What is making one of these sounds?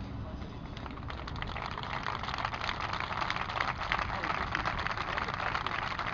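A crowd claps steadily outdoors.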